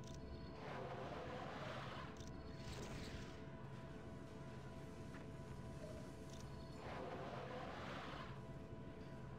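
Energy blasts whoosh and roar in loud bursts.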